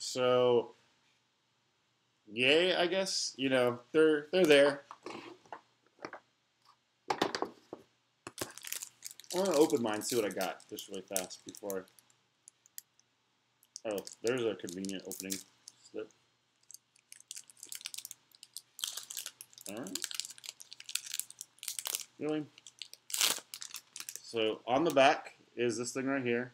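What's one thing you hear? Card packs rustle and crinkle in a man's hands.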